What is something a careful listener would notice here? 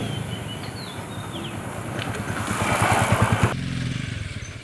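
A motorcycle engine runs and revs as the bike rides past close by.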